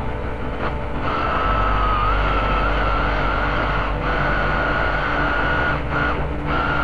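An electric drill whirs in short bursts.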